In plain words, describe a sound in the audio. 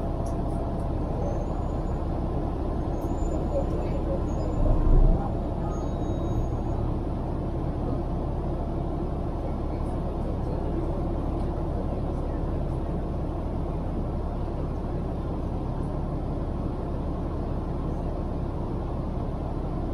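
A large truck engine idles with a steady low rumble close by.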